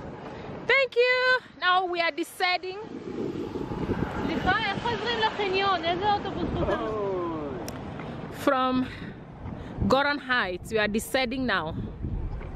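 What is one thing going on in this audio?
A young child calls out loudly nearby.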